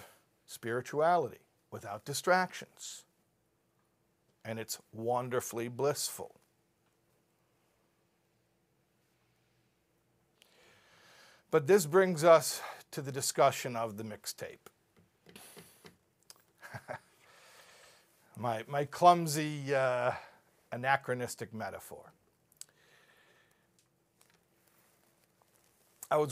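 A middle-aged man speaks with animation into a microphone, pausing between phrases.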